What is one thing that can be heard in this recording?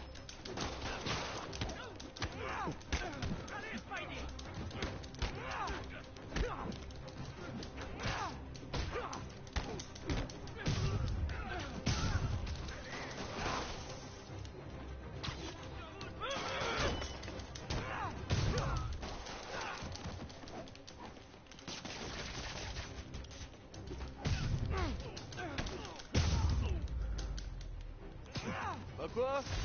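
Punches and heavy thuds land in a fast brawl.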